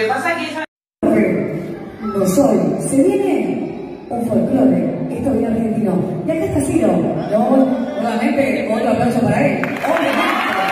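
A woman announces through a loudspeaker in an echoing hall.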